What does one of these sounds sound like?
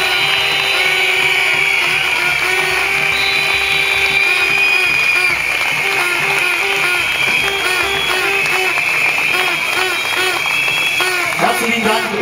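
Whistles shrill steadily through a crowd.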